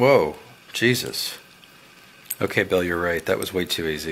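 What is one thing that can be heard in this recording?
A padlock shackle snaps open with a sharp click.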